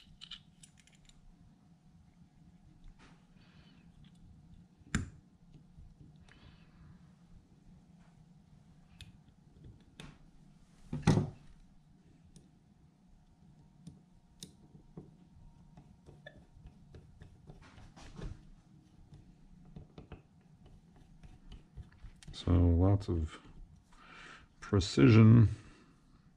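Small metal parts click and clink as they are handled.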